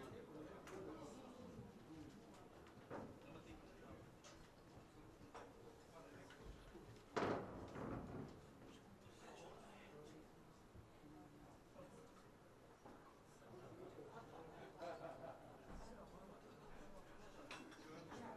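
Men talk and laugh nearby.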